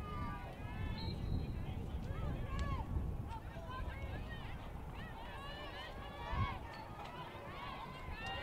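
Players' feet run on artificial turf.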